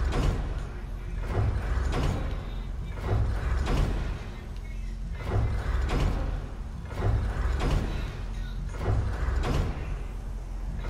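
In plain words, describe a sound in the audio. A deep whooshing thud sounds as a game menu switches, again and again at a steady pace.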